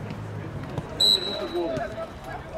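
A referee blows a short, sharp whistle.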